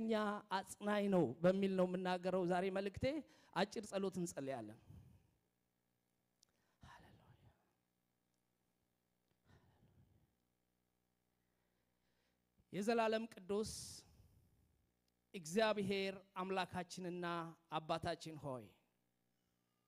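A man preaches with feeling through a microphone in an echoing hall, pausing between phrases.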